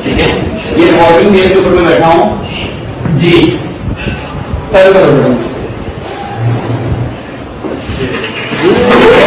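A man speaks loudly to a group in a room.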